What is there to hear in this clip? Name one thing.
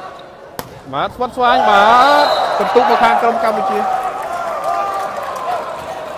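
A crowd cheers and roars in a large echoing hall.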